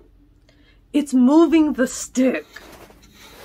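A young woman exclaims loudly in shock.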